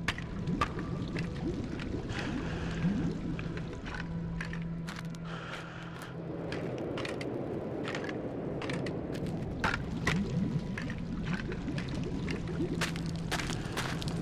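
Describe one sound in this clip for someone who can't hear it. Fire crackles and pops.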